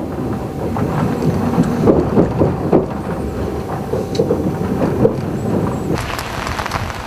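A large paper map rustles and crinkles as hands fold it.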